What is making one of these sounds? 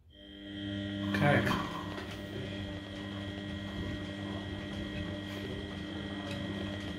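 Laundry tumbles and thumps inside a washing machine drum.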